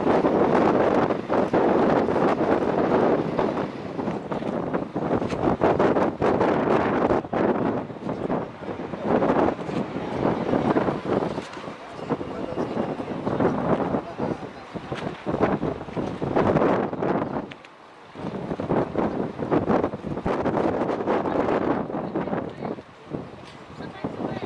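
Wind gusts hard and buffets outdoors.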